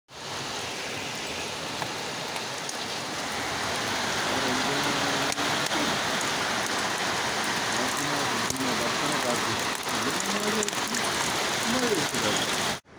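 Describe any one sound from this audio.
Hail pours down heavily outdoors in a steady roar.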